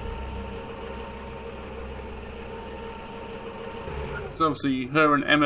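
An electric cart motor hums steadily.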